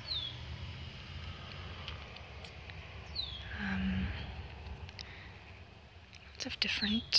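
A slow stream flows softly.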